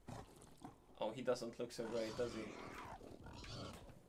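A wild boar grunts and squeals.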